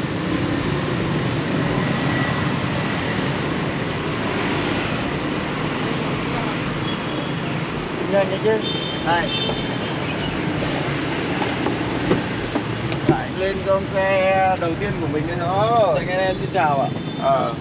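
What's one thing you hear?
Traffic rumbles steadily on a wet street outdoors.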